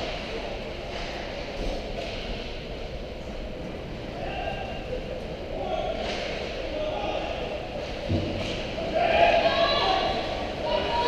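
Skate blades scrape across ice in a large echoing rink.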